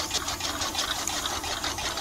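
Grain patters as it pours onto a tray.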